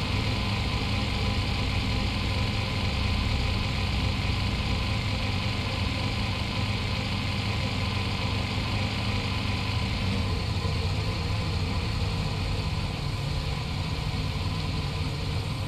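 A car engine hums steadily as a car drives slowly.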